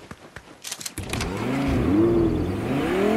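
A car engine starts and hums.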